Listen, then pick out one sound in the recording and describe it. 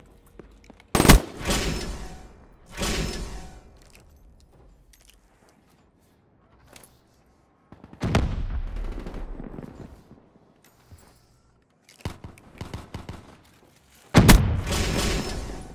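A rifle fires loud shots that boom and echo.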